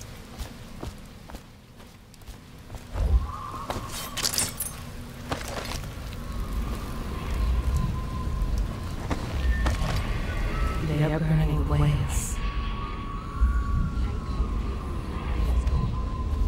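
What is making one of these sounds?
Footsteps thud over rubble and wooden boards.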